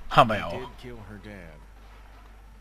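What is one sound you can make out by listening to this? A man speaks in a worried, strained voice close by.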